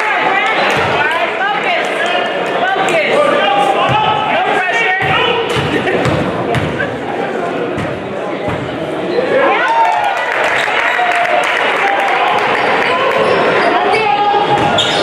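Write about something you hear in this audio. A crowd chatters and cheers loudly in an echoing gym.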